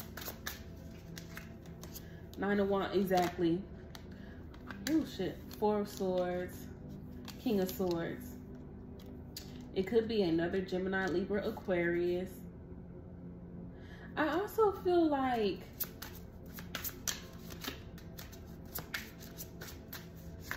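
Playing cards shuffle and flick in a hand.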